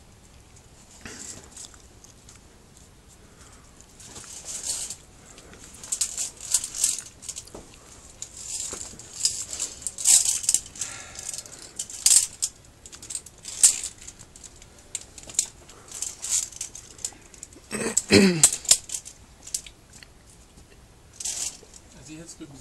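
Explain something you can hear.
Metal carabiners clink and scrape against a steel cable close by.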